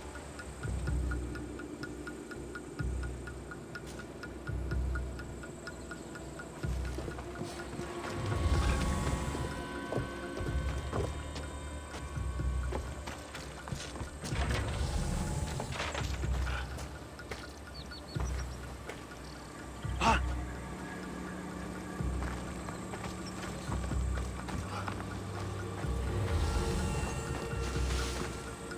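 Footsteps crunch steadily on dirt and wooden planks.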